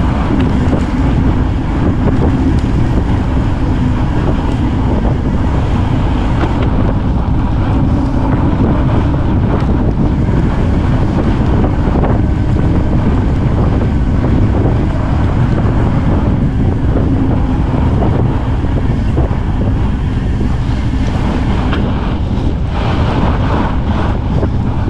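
Wind rushes loudly past a moving bicycle.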